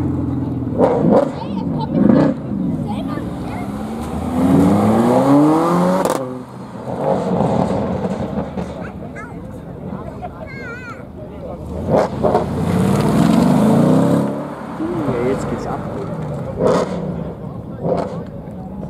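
Exhaust pops and bangs crackle sharply.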